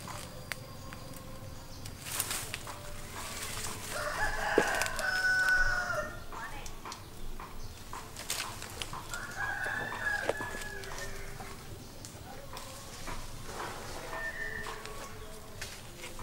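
Leaves rustle and twigs snap as branches are pulled.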